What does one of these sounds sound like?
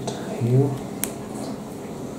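Small plastic pieces click as they are pressed together.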